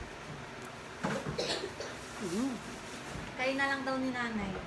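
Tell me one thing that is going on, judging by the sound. A woman speaks close by, with a hum and a drawn-out tone of voice.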